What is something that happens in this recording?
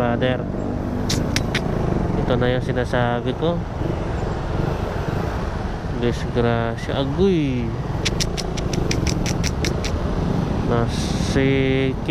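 Traffic hums along a road outdoors.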